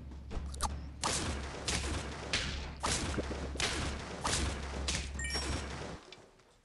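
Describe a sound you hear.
Cartoonish game hit sounds thump in quick succession.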